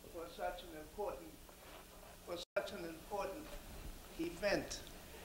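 An elderly man speaks into a microphone in a large hall.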